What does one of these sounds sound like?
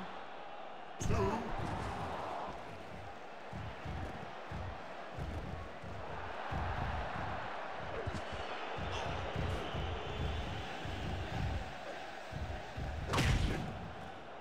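Heavy thuds of bodies hitting a wrestling mat sound now and then.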